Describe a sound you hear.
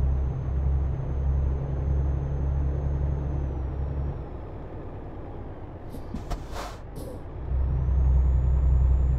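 A truck engine drones steadily, easing off and then growing louder again.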